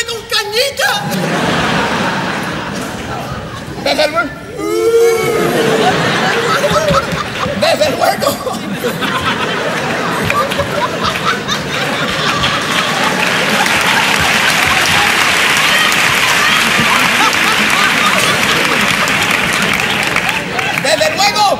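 An audience laughs and applauds loudly in a large hall.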